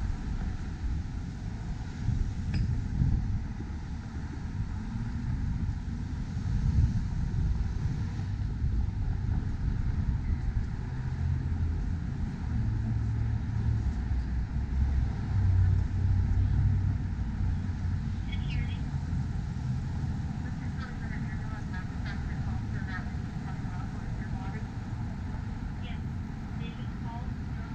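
City traffic hums steadily nearby.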